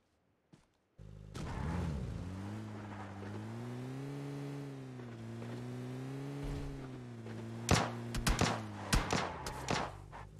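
A car engine hums and revs as the vehicle drives over rough ground.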